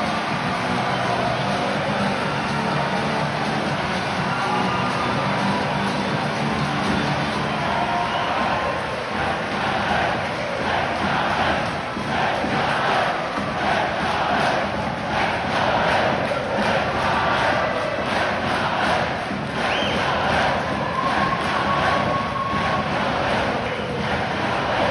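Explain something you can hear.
A large stadium crowd chants and sings loudly outdoors.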